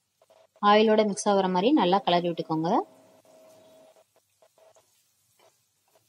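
A wooden spatula scrapes and stirs onions in a frying pan.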